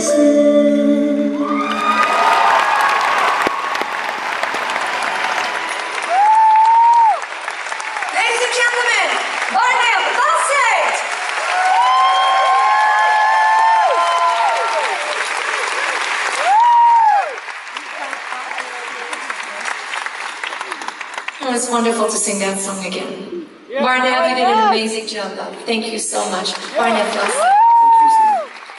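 A woman sings through loudspeakers in a large echoing hall.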